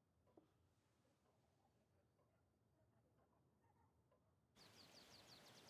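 Dishes rattle softly.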